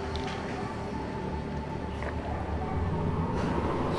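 A man sips a drink from a glass.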